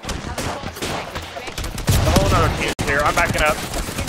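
A rifle fires a short burst of shots.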